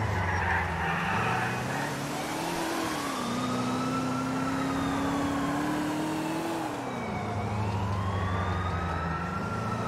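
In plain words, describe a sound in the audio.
Tyres roll over the road.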